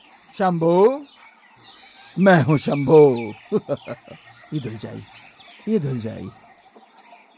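A man sings loudly with animation, close by.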